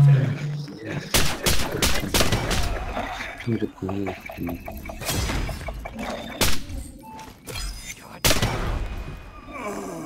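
Rifle shots crack in short, quick bursts.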